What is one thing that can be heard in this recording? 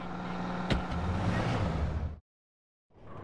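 A car engine starts and revs up.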